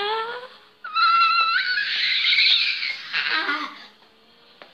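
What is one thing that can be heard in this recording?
A young girl shouts loudly close by.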